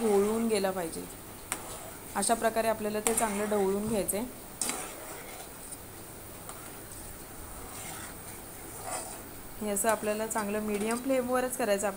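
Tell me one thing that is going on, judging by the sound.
A metal spoon scrapes and taps against a pan.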